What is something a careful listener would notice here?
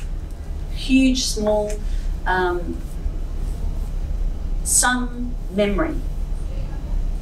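A middle-aged woman speaks calmly nearby.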